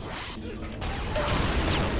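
An energy weapon fires with a loud whooshing blast.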